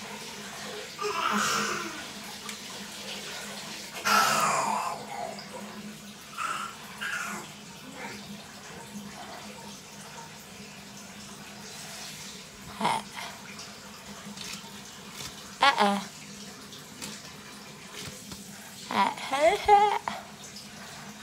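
A young woman makes short strained gagging sounds close by.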